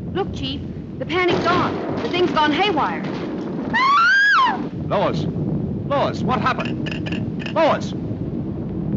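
A man speaks into a telephone with animation.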